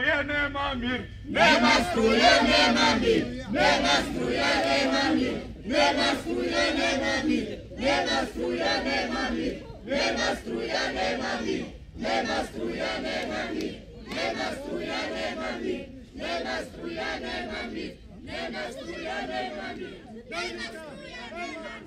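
A crowd of men and women chants loudly together in a steady rhythm outdoors.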